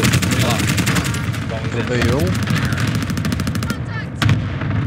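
Rapid gunfire rattles in quick bursts.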